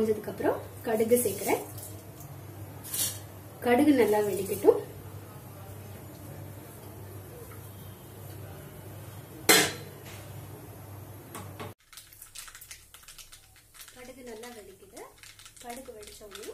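Seeds crackle and sizzle in hot oil in a pan.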